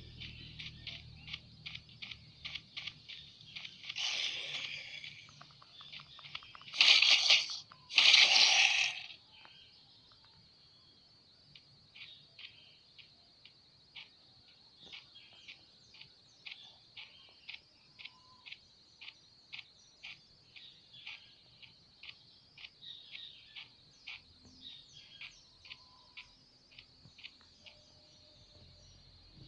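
Footsteps crunch at a steady walking pace.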